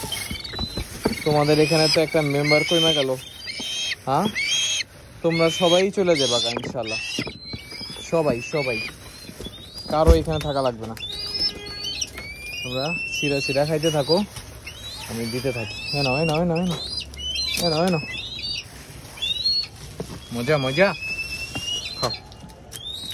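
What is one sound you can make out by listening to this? Birds of prey call with loud, quavering, shrill cries again and again.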